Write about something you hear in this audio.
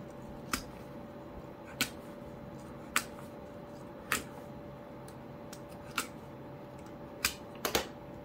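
A craft knife scrapes softly along paper.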